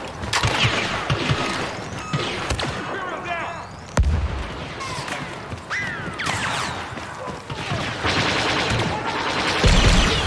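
Blaster guns fire in quick, sharp zaps.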